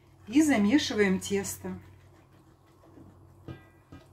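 A whisk stirs liquid in a bowl.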